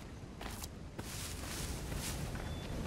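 Grass and bushes rustle as someone pushes through them.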